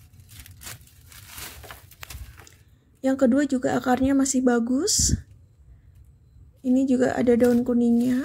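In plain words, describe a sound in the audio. Hands rustle and crumble loose soil.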